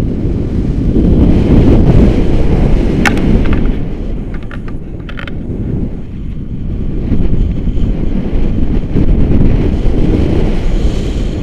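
Strong wind buffets the microphone, roaring steadily.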